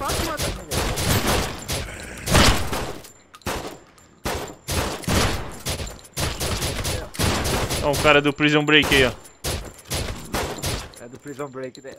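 Rapid gunfire bursts ring out close by.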